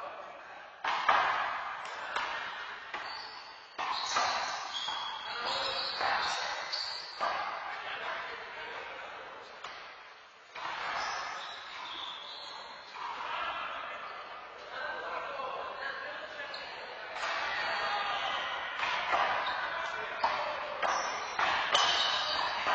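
A rubber ball smacks hard against walls and floor in an echoing hall.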